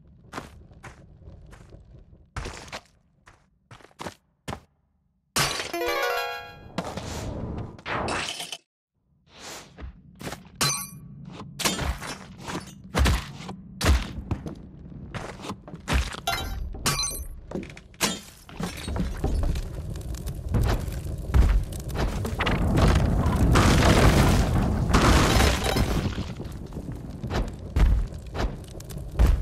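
Short video game sound effects crack and click again and again.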